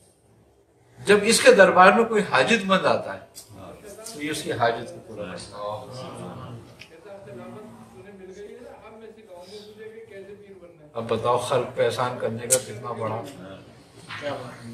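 An elderly man speaks with feeling, close by.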